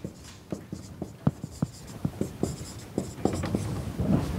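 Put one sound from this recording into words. A marker taps and squeaks on a whiteboard.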